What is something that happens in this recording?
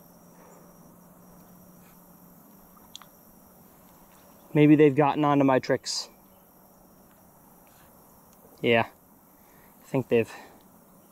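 A fishing reel whirs softly as its handle is turned.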